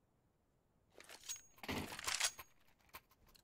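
A rifle clatters to the ground.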